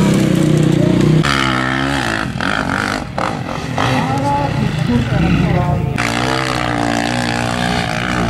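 A dirt bike engine revs hard and whines, rising and falling in pitch.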